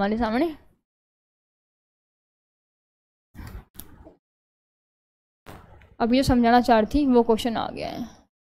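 A young woman speaks with animation through a close microphone, pausing between phrases.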